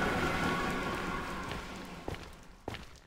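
Lava bubbles and pops nearby.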